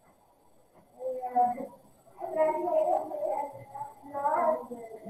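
A young woman speaks calmly through a microphone, heard as in an online lesson.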